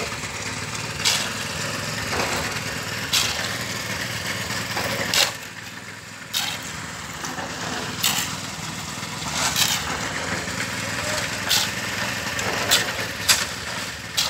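A shovel scrapes and crunches through gravel.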